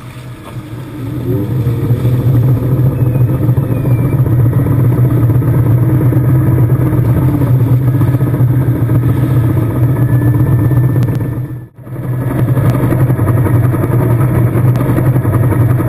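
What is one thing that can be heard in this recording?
A boat's engine roars steadily close by.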